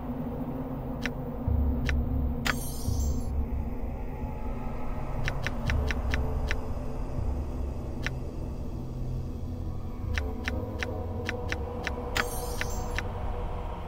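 A game menu gives short, sharp clicks as options are picked.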